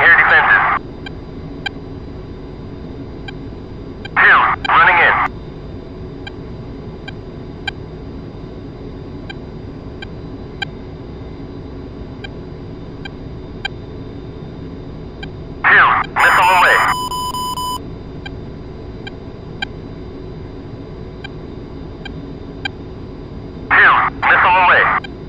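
A jet engine drones steadily.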